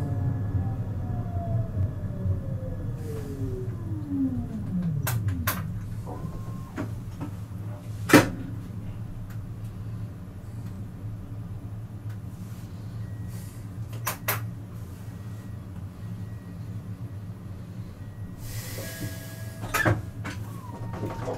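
A low hum of distant city traffic carries on outdoors.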